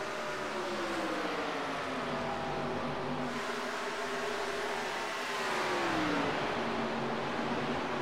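Racing car engines roar at high speed, rising and falling in pitch.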